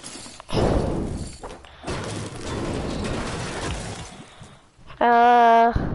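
A pickaxe strikes a metal dumpster with clanging hits.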